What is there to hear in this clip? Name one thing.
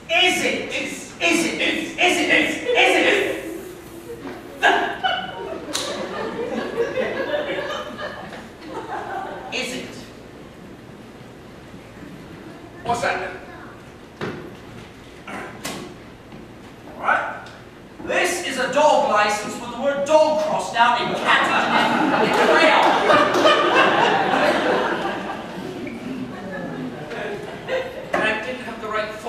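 Men speak with animation, heard from a distance in a hall.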